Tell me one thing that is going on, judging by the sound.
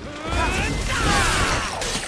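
Fire bursts with a loud whoosh.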